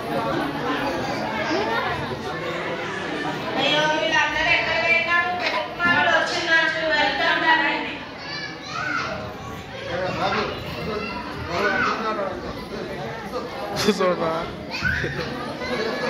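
Women sing together loudly through a microphone.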